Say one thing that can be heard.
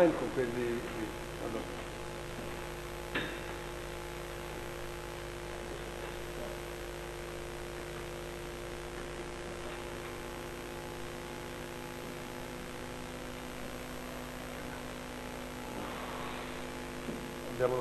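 A man speaks nearby.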